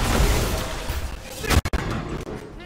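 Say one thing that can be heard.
Weapons clash and strike in a fight.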